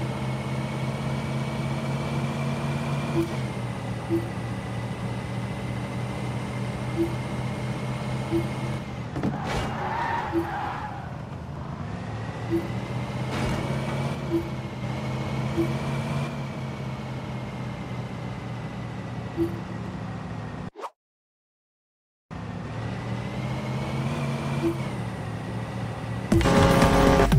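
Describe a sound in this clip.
A game car engine hums steadily, rising and falling as it speeds up and slows down.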